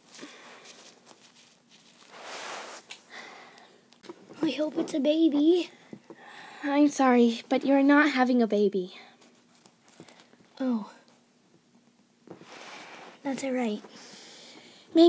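Plastic dolls are handled and bump against each other softly.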